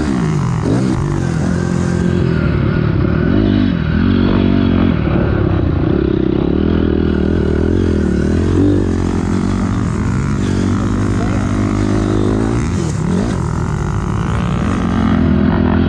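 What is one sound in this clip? Another dirt bike engine whines just ahead.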